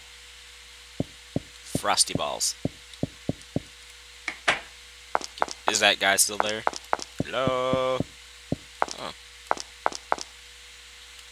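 Soft footsteps tap in a steady run.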